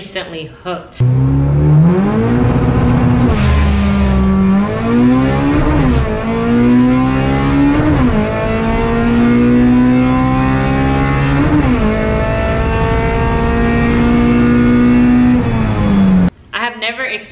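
A car engine revs loudly, rising and falling in pitch as gears shift.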